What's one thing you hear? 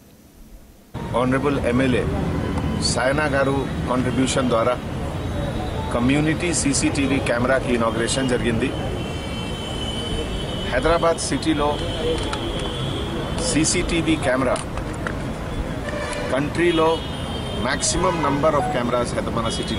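A man speaks calmly and steadily into nearby microphones.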